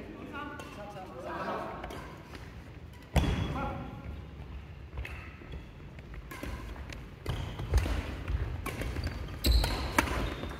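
Adult players call out and talk across the hall.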